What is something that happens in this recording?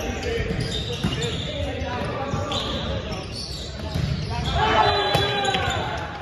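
A volleyball is struck with a hand.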